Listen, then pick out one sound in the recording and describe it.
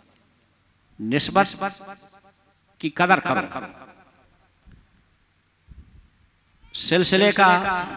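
An elderly man sings or chants with feeling into a microphone, in bursts with pauses, heard through loudspeakers with some reverberation.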